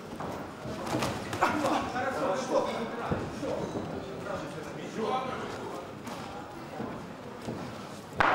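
A crowd murmurs and shouts in a large echoing hall.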